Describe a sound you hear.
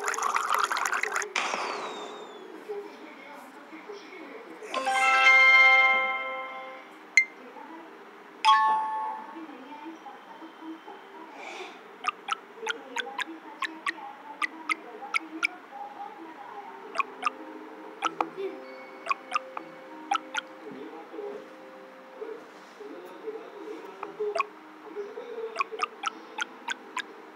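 Game music plays steadily in the background.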